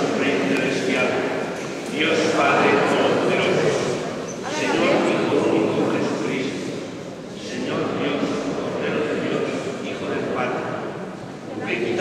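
A crowd of men and women sings together in a large echoing hall.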